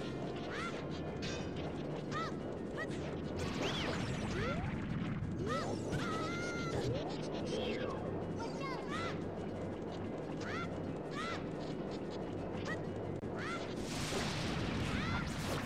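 A low, busy rumble of game music plays throughout.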